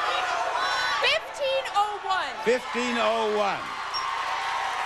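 A young woman shouts excitedly.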